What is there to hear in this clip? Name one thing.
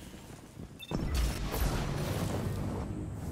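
An explosion bursts with a crackling blast.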